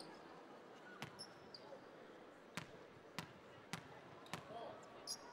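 A basketball bounces on a hardwood court in an echoing arena.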